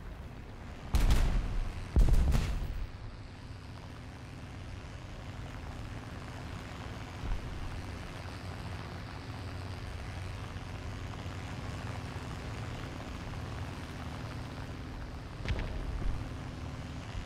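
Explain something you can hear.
Bombs explode with loud, deep booms.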